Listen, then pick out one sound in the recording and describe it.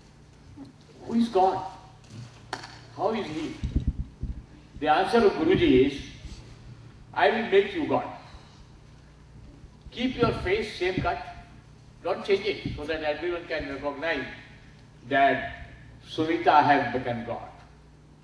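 An elderly man speaks calmly into a microphone, heard through loudspeakers in a large echoing hall.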